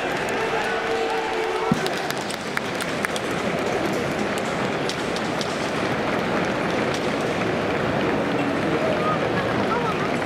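A large crowd murmurs and chants in the distance.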